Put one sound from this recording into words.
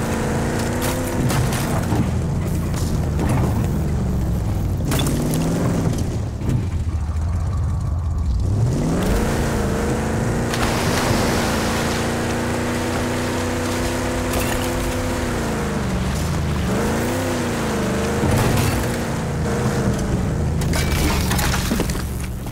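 A vehicle engine roars and revs up and down.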